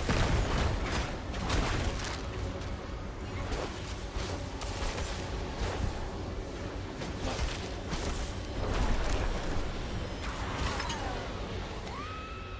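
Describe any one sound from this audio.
Spell blasts and sword hits burst and crash again and again.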